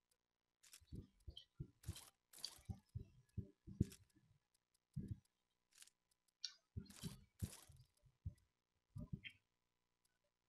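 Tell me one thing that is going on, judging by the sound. Short soft clicks and thuds sound as a game menu is browsed.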